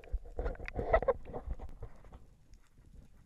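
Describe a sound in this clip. Bubbles rush and gurgle close by, muffled underwater.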